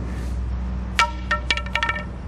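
A skateboard clatters on pavement.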